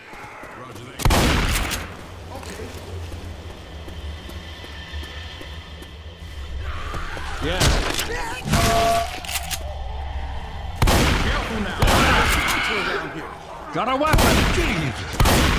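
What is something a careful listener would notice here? A shotgun fires with loud, echoing blasts.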